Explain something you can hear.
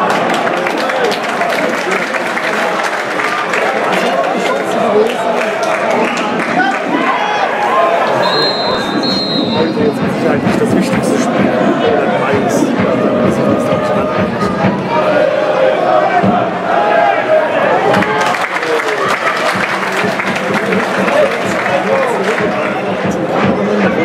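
A large stadium crowd chants and cheers loudly.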